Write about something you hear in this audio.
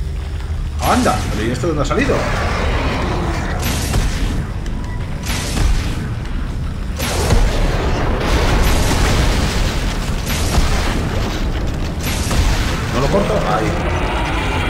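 A weapon fires in sharp bursts.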